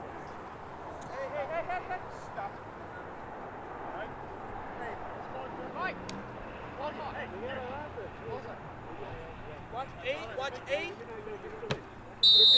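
Young men shout to each other from a distance across an open field.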